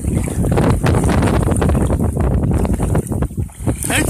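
Water sloshes as a person wades out of a river.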